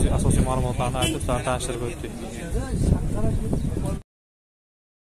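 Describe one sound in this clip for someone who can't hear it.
Men talk loudly nearby outdoors, in a busy crowd.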